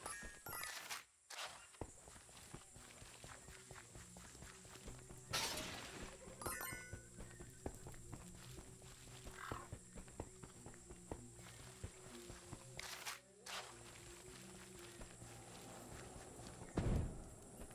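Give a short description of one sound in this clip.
A small figure's footsteps patter quickly on the ground.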